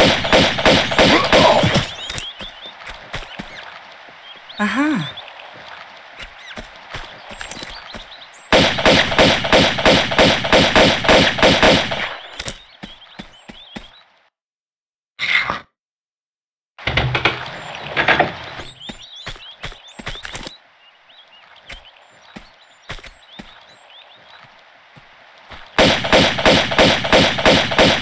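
Quick footsteps thud on hollow wooden boards.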